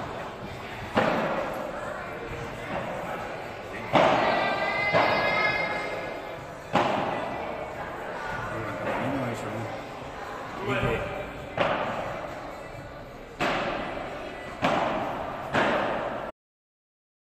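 Padel rackets strike a ball with sharp pops that echo through a large hall.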